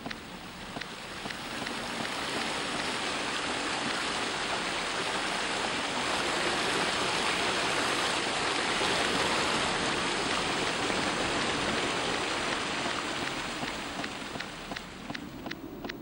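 Water rushes loudly down a waterfall, swelling and then fading.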